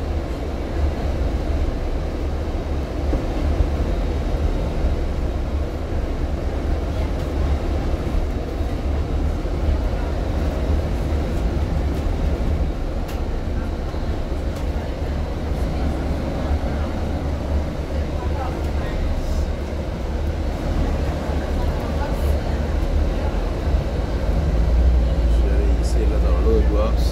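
Traffic passes along a busy street.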